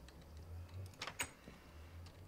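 A wooden trapdoor clacks open.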